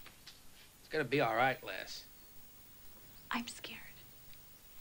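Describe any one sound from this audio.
A woman speaks.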